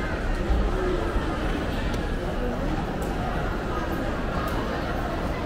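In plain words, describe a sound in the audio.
A crowd murmurs with many voices in a large echoing hall.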